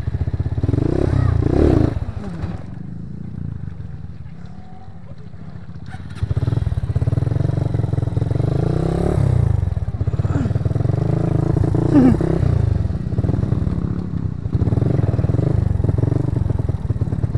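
A motorcycle engine rumbles and revs loudly up close.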